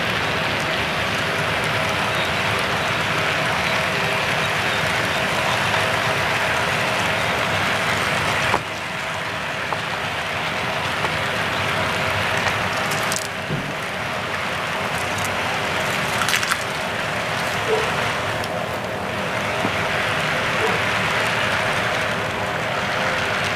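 A model locomotive motor hums steadily.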